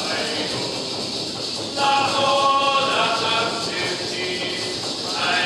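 A rattle shakes in a steady rhythm.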